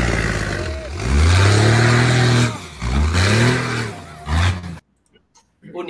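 A rally truck engine roars and revs as it drives through sand.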